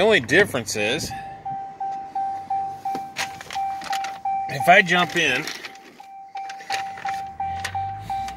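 A vehicle's door-open chime beeps steadily.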